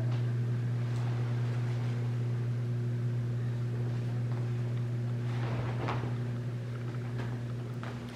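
A heavy rug rolls out and brushes softly across a wooden floor.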